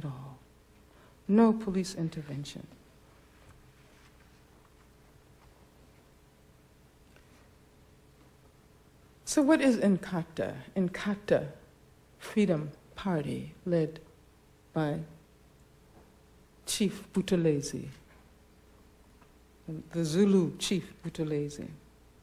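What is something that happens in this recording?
A woman speaks calmly into a microphone, with long pauses.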